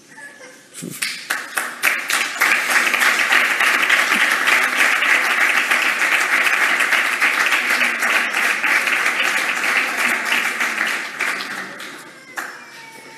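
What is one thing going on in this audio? An audience applauds steadily for a long while.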